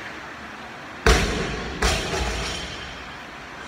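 A loaded barbell with bumper plates is dropped from overhead onto the floor, thudding and bouncing, echoing in a large hall.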